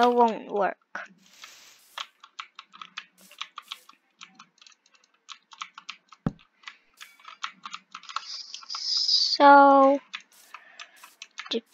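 Quick soft crackling taps sound again and again.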